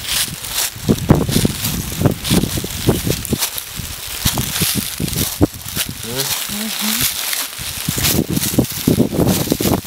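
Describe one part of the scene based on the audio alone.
Dry leaves rustle and crunch under a cat's paws.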